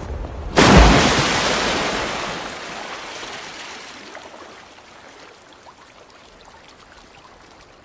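Water sprays and settles, slowly fading.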